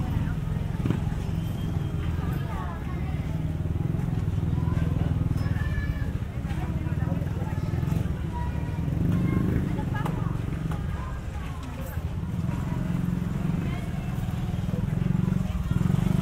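Motorcycle engines rumble and putter close by.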